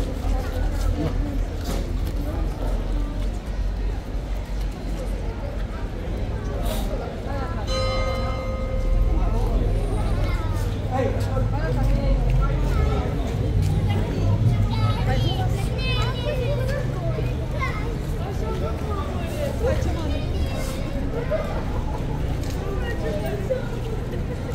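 A crowd of people chatter nearby outdoors.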